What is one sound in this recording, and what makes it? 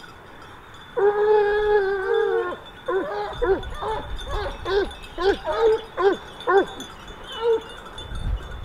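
A pack of hounds bays and howls excitedly.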